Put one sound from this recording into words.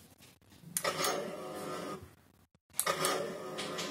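A small button clicks as it is pressed.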